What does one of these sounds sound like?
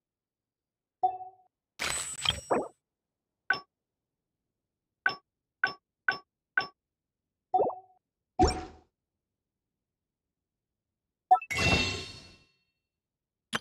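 Short electronic menu clicks and chimes sound now and then.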